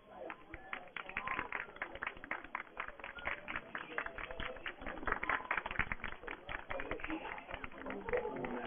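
A crowd applauds with many quick claps.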